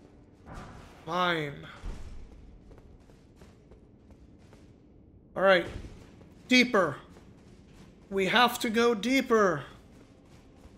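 A man speaks up in short, animated bursts into a close microphone.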